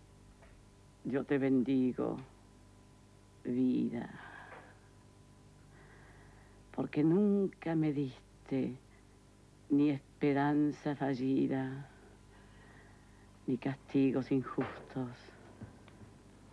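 Another elderly woman speaks thoughtfully, with long pauses, close to a microphone.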